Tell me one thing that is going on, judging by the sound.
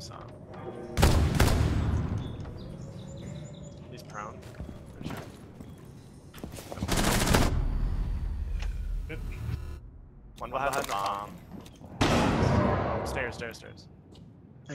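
Loud rifle shots boom with a short echo.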